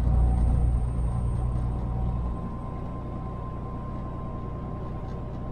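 A car drives along a road with a steady low rumble of engine and tyres.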